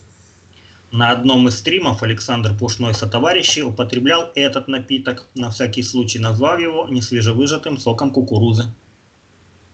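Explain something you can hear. A man reads out a question clearly over an online call.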